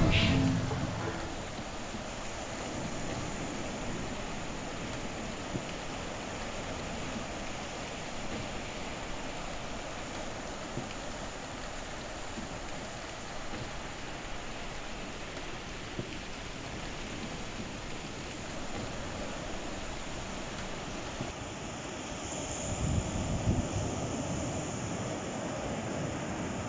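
Waves wash and break steadily on a shore.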